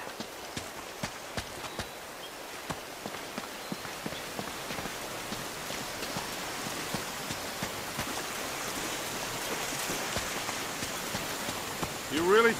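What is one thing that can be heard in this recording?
Water splashes down a waterfall nearby.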